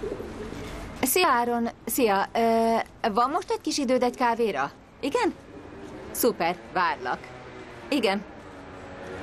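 A woman talks on a phone, close by, in a lively way.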